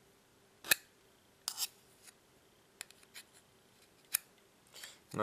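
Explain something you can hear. Small metal pieces click and tap against each other close by.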